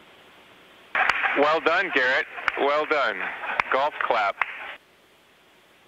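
A man speaks briefly and calmly over a radio link.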